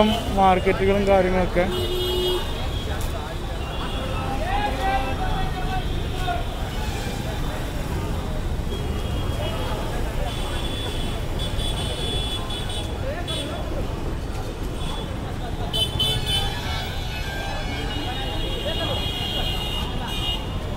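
A bus engine idles and rumbles close by.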